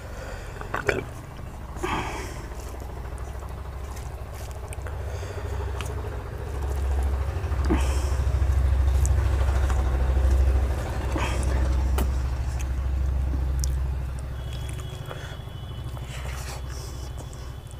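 Fingers squish and mix soft rice on a metal plate.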